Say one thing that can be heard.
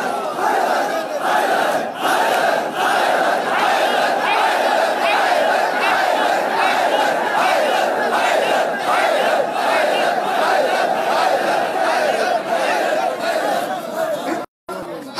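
A crowd beats their chests rhythmically.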